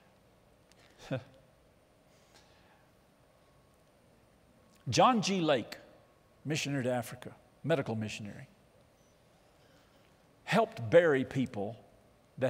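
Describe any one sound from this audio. An older man speaks with animation through a microphone, in pauses, in a large echoing hall.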